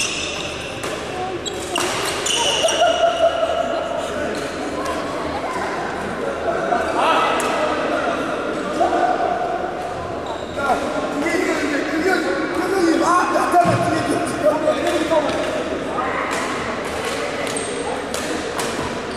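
Sports shoes squeak on a hard court floor.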